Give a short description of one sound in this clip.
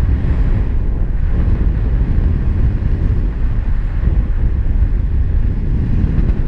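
Strong wind rushes and buffets steadily against a microphone high in open air.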